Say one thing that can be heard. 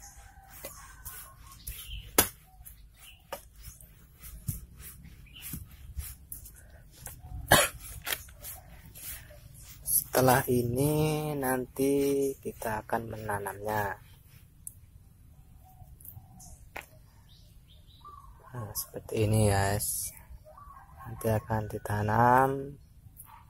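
Hands rustle and crumble dry soil.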